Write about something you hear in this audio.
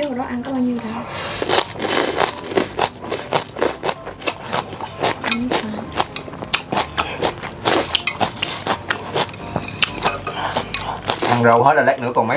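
A young woman chews and slurps food noisily close to a microphone.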